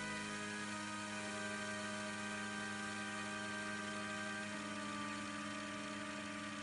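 An airship's propellers drone steadily.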